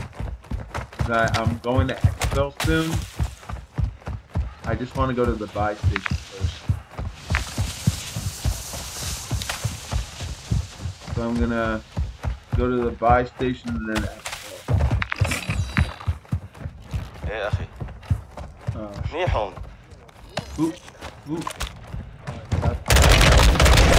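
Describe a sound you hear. Footsteps run quickly over dirt and pavement.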